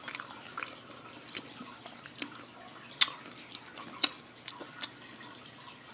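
A metal fork clicks and scrapes against a plate.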